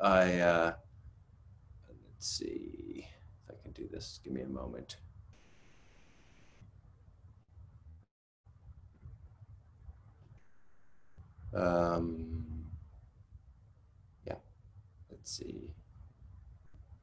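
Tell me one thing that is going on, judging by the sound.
A middle-aged man speaks calmly over an online call, with pauses.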